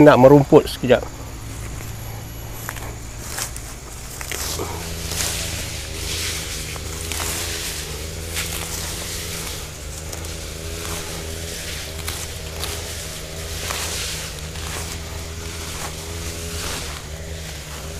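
Leaves rustle as a man handles plants.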